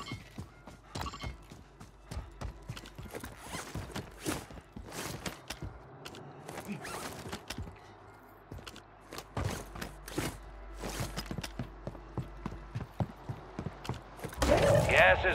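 Footsteps run across hard ground and wooden boards.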